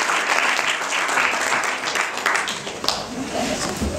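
An audience applauds in a hall.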